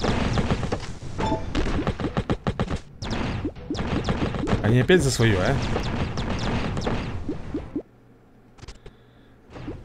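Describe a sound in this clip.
Small cartoon blasts and fiery bursts go off in quick succession.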